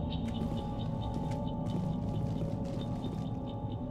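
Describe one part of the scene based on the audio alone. Footsteps crunch on gravel.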